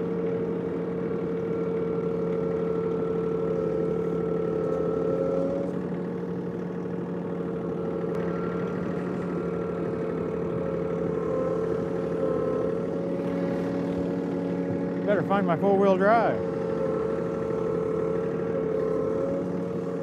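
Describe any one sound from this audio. A small tractor engine hums steadily nearby.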